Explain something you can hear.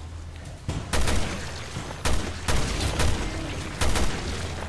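A gun fires loud single shots.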